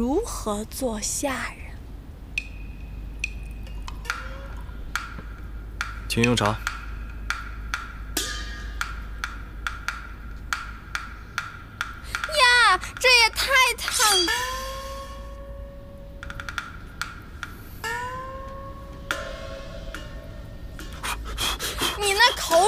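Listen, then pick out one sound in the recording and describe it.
Soft music plays with sparkling chimes.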